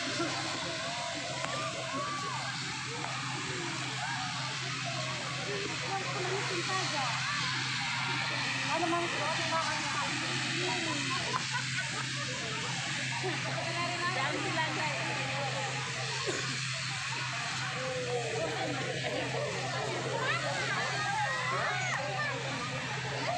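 A large outdoor crowd chatters with many voices at once.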